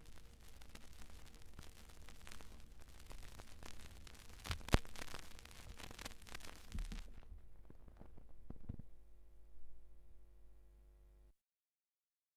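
A turntable motor hums steadily.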